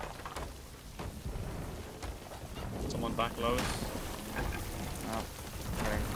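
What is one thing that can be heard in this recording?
Water sprays and hisses through holes in a wooden hull.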